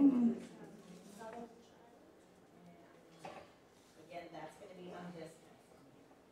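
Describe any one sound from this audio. A middle-aged woman speaks softly and haltingly close by.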